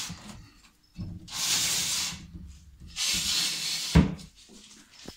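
A glass terrarium door slides along its track.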